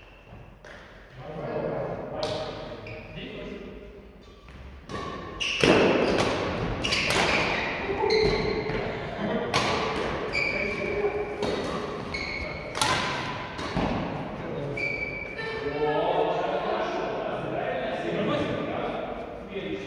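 Adult men and women talk and call out across a large echoing hall.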